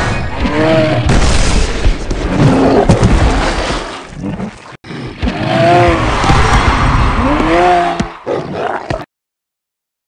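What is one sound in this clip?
Heavy thuds and crashes of creatures fighting boom out.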